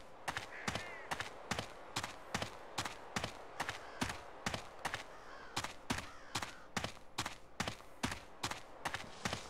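Footsteps crunch steadily over frozen ground.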